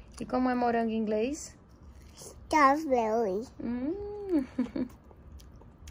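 A little girl speaks in a high, sing-song voice close by.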